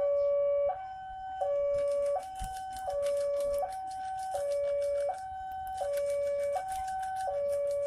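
A railway crossing alarm rings loudly, alternating between a low and a high tone.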